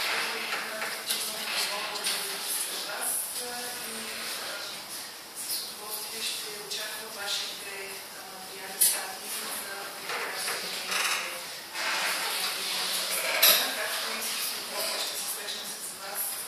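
A woman speaks steadily to an audience in a room with some echo.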